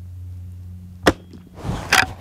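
A rifle fires a single loud shot outdoors.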